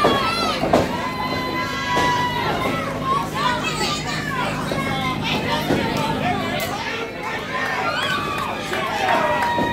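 Wrestlers thud onto a wrestling ring's canvas.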